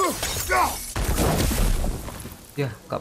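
A magic blast bursts loudly in a game.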